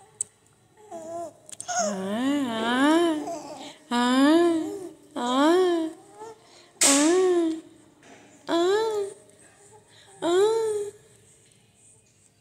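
A baby coos and whimpers close by.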